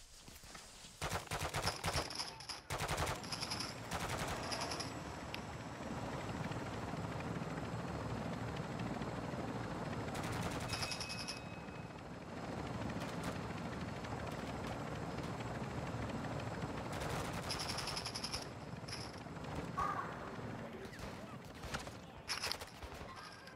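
A heavy military helicopter's rotors drone in flight.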